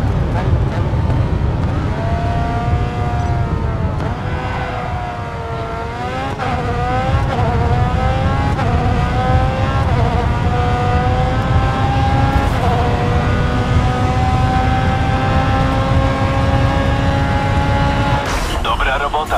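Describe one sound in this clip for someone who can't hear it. A racing car engine screams and climbs in pitch as it speeds up through the gears.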